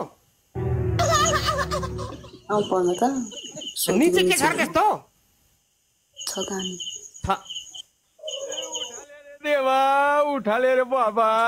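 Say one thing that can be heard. A young woman speaks with animation through an online call.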